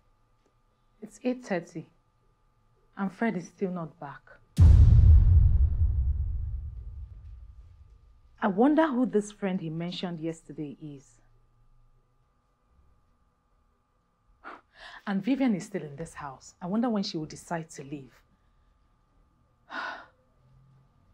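A woman speaks with agitation, close by.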